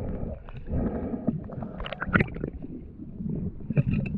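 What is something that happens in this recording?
Muffled underwater rumbling and bubbling.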